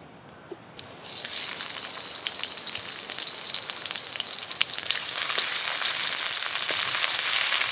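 Hot oil sizzles loudly in a pan.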